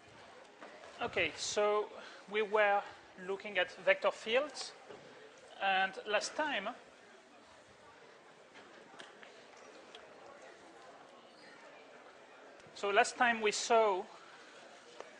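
A man lectures in a large room, speaking through a microphone.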